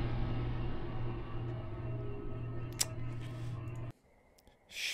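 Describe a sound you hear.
Low droning music plays, then cuts off abruptly.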